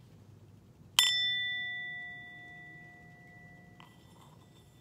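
A singing bowl is struck once and rings out, slowly fading.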